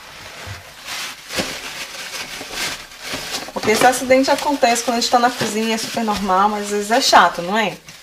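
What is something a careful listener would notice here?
A paper towel crinkles as it is handled.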